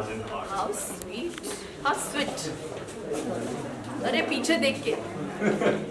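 A woman speaks softly close by.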